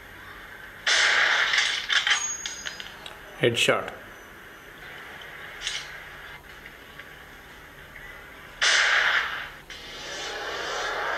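Sniper rifle shots boom from a phone's small speaker.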